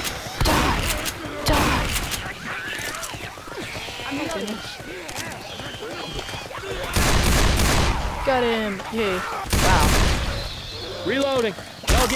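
Zombies snarl and growl nearby.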